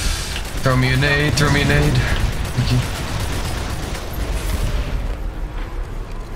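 A heavy engine rumbles low and steady.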